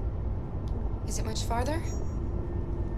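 A girl asks a quiet question.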